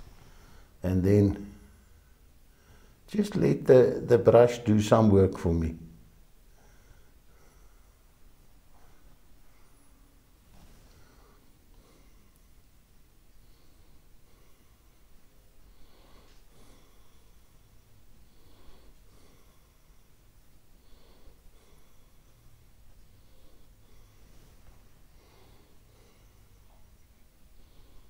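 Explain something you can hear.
A paintbrush brushes softly against canvas.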